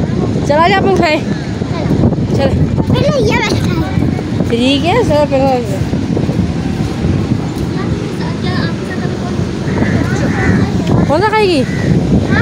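A young girl talks and squeals in a high, lively voice close by.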